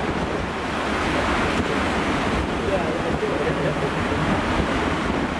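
Heavy waves crash and roar against rocks and a sea wall.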